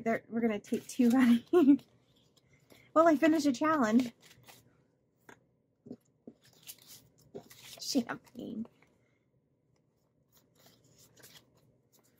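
Paper banknotes rustle and flick as they are counted by hand.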